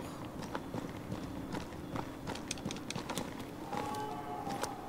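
Footsteps patter quickly over rocky ground.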